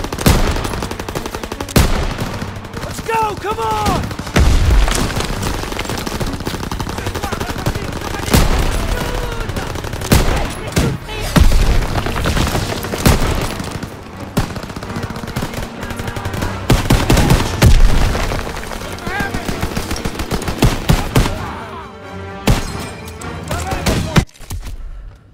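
Rifle shots crack loudly and rapidly.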